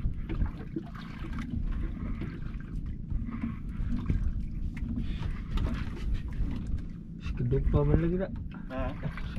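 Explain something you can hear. Waves slap and splash against a small boat's hull.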